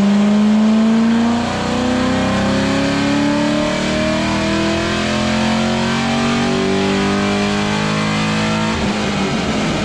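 A car engine roars loudly, climbing steadily in pitch as it revs hard.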